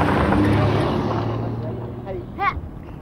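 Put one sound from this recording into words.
A car drives away along a road.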